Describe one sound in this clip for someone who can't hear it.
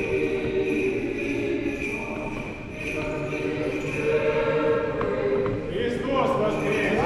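A choir sings a slow chant in a large echoing hall.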